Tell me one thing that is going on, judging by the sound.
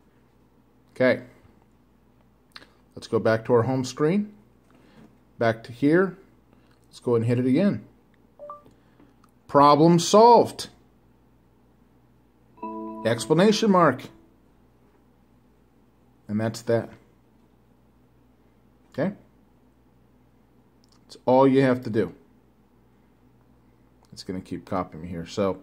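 A man speaks slowly and clearly, dictating into a phone close by.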